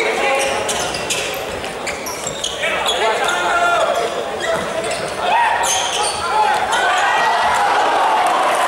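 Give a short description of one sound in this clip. A ball thuds as players kick it in a large echoing hall.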